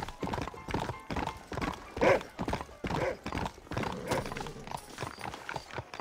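Horse hooves clop on a street.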